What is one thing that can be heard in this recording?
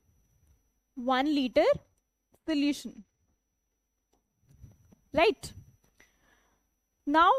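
A young woman explains calmly into a close microphone, in short bursts.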